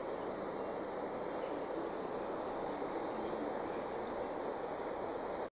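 A shallow river rushes steadily over rocks.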